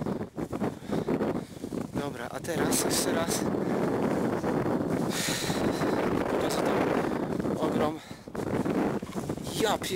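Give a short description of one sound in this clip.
A man talks close to a microphone, slightly breathless.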